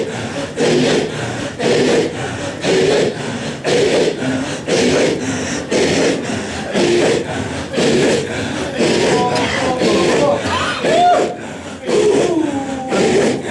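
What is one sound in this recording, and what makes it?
A group of men chant loudly together in a rhythmic, pulsing call.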